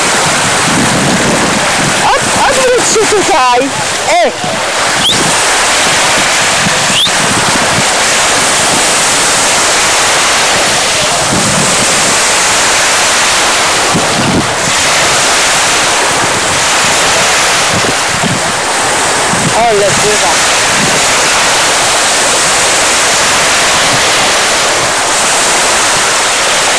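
Small waves wash onto a pebbly shore.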